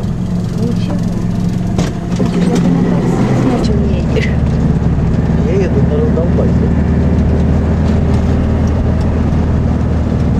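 A vehicle's interior rattles and knocks over bumps.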